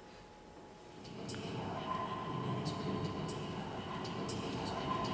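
A young woman sings in a large echoing hall.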